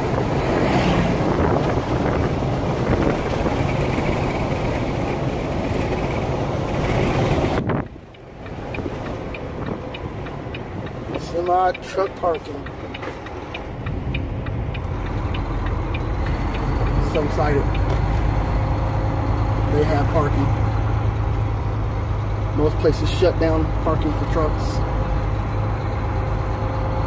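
A vehicle hums and rumbles along a road, heard from inside.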